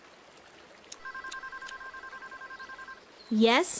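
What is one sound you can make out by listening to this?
A phone beeps rapidly through its earpiece.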